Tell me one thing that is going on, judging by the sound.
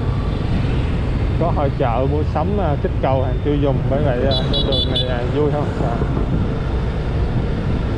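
Motor scooters ride past nearby.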